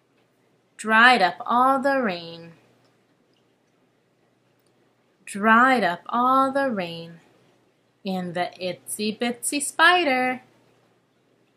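A young woman speaks calmly and close up, in short phrases with pauses.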